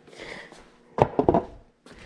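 Wooden stool seats knock together.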